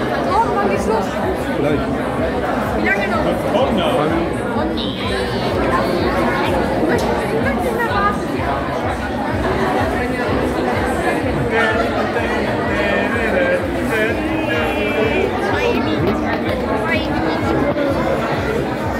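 Music with a steady beat plays loudly over loudspeakers.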